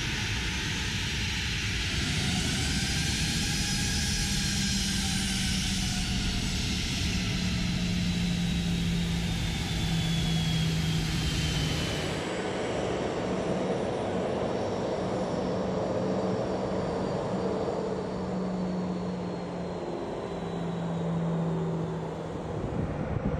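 Jet engines whine loudly as an airliner taxis close by.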